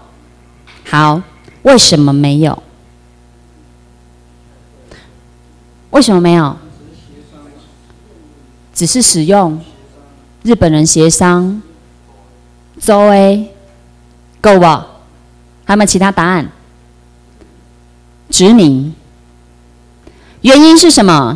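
A young woman speaks through a microphone and loudspeakers in short phrases, with pauses, in a room with some echo.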